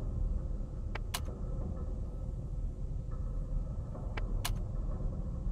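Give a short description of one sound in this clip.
A game menu clicks softly as the selection changes.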